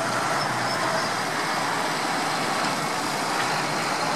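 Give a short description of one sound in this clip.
A tractor engine rumbles as it drives past close by.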